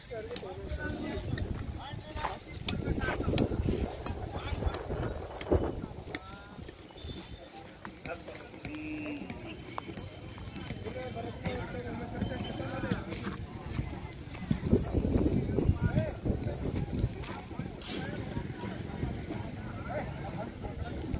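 Men talk at a distance in an outdoor crowd.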